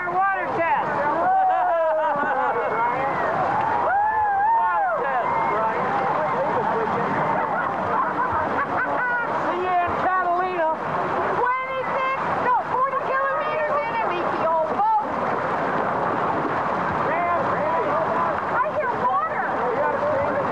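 A crowd of men and women cheer and shout excitedly outdoors.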